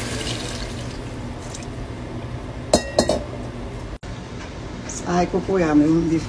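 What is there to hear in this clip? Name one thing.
Water bubbles in a pot.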